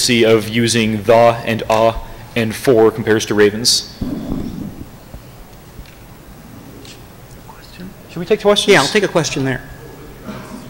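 A man speaks with animation into a microphone, in a large echoing room.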